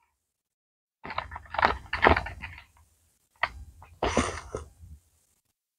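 Plastic packaging crinkles and taps in hands.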